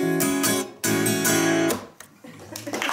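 A man strums an acoustic guitar up close.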